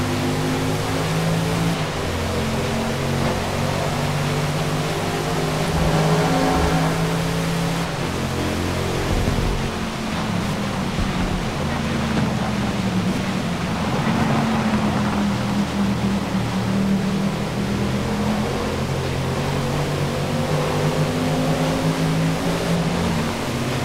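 A car engine roars at high revs, shifting gears as it speeds up and slows down.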